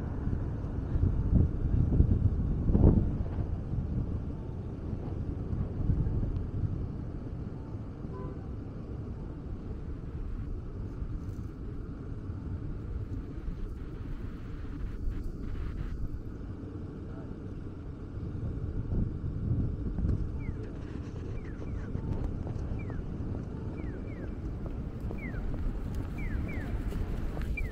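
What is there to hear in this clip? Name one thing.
Traffic hums steadily outdoors in a city.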